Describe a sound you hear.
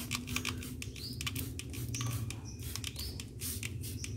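A spray bottle hisses out short bursts of mist.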